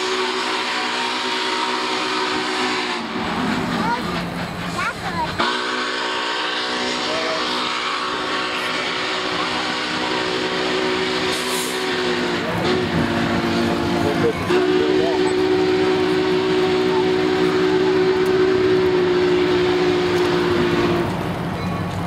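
A distant steam locomotive's whistle blows in long, loud blasts.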